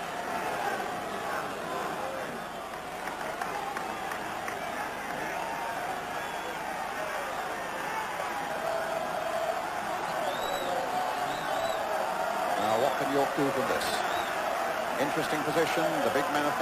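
A large crowd roars and cheers loudly in an open stadium.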